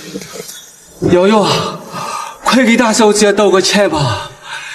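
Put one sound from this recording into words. A middle-aged man speaks pleadingly, with emotion.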